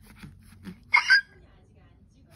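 A rubber toy squeaks sharply.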